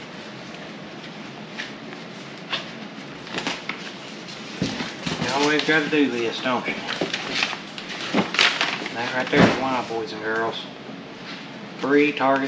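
Plastic and cardboard packaging rustles and crinkles close by.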